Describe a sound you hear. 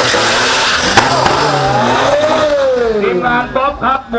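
A car roars away down the track, its engine pitch rising and falling.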